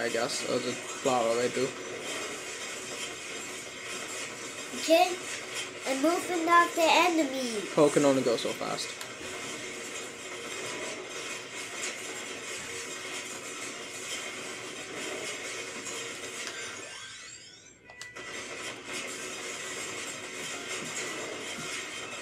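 Video game attack effects crackle and chime rapidly.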